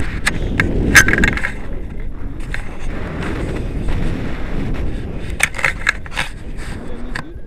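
Wind buffets a microphone during a paraglider flight.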